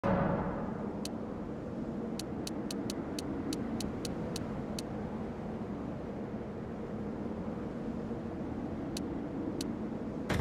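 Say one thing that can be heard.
Short menu clicks tick in quick succession.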